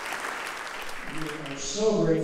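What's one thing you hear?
An elderly man speaks into a microphone over a loudspeaker.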